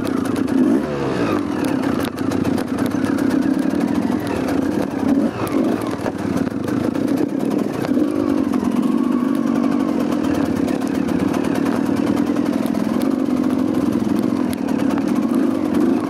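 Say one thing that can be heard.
Tyres crunch over loose rocks and splash through mud.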